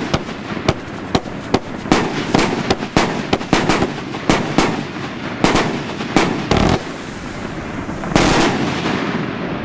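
Fireworks bang and crackle loudly, one burst after another.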